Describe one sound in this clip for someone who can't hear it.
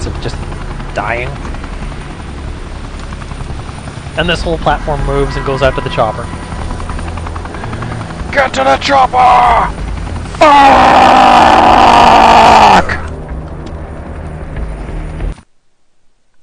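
A helicopter's rotor thumps nearby.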